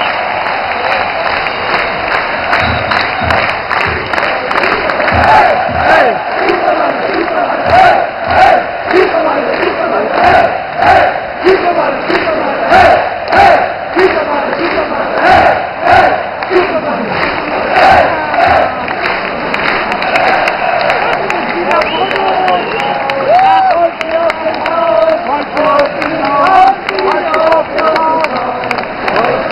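A large stadium crowd chants loudly in rhythm.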